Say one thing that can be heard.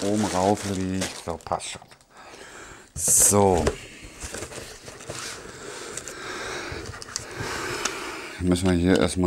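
Cardboard and paper rustle as a box is unpacked.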